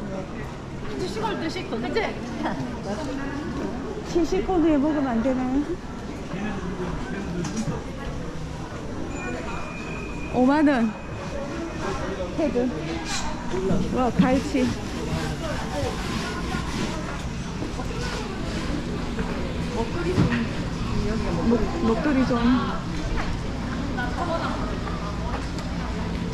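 Women talk to each other close by.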